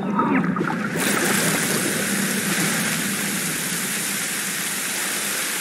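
Rain pours steadily outdoors.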